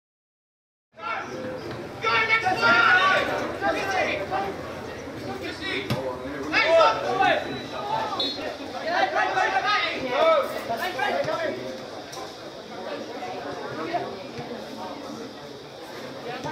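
Spectators chatter and call out close by.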